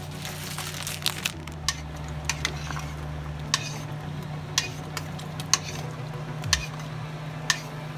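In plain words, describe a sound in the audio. A metal spoon clinks against the side of a pot while stirring.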